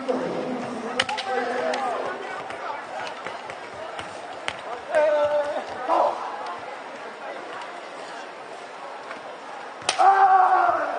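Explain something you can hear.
Bamboo swords clack together sharply.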